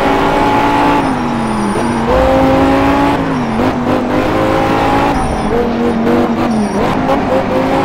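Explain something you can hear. Tyres squeal on asphalt through bends.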